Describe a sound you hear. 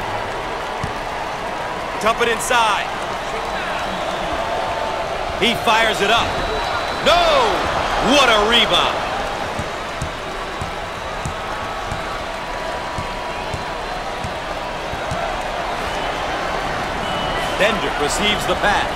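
A bouncing basketball thumps on the floor.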